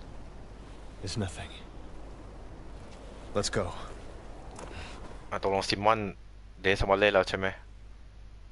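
A man answers in a low, calm voice.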